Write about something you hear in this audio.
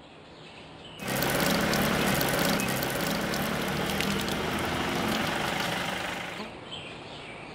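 Water gushes from a tap and splashes onto the ground.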